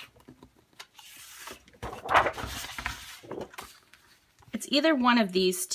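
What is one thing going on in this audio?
Sheets of paper rustle and slide against each other.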